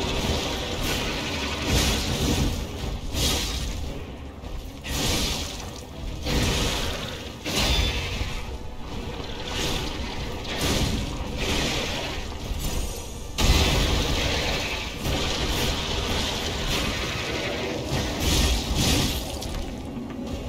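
Weapons clash and slash in heavy, repeated blows.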